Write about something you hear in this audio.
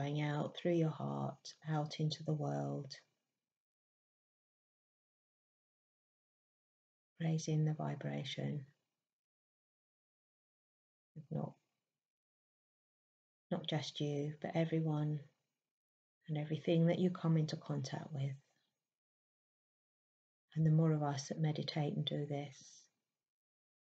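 A middle-aged woman speaks calmly and slowly into a nearby microphone, pausing between phrases.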